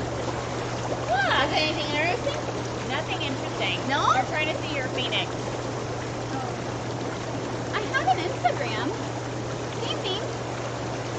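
Young women talk and laugh with animation nearby.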